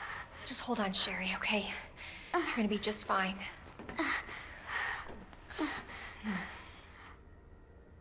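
A young woman speaks softly and reassuringly up close.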